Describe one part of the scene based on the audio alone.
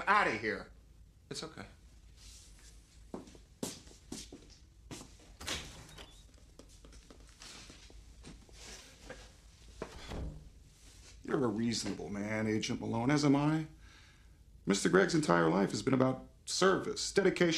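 A man speaks in a low, serious voice nearby.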